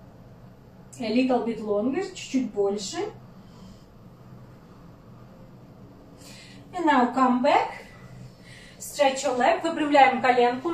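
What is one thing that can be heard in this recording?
A young woman speaks with strain close by.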